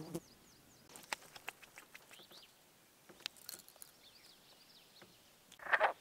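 Metal lure clicks as hands handle a fish.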